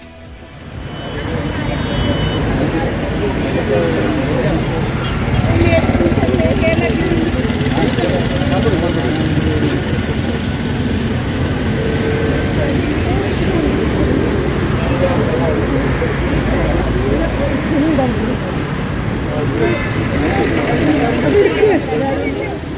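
A crowd of women and men chatter close by outdoors.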